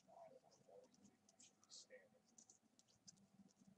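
Hands tear open a foil trading card pack, the wrapper crinkling.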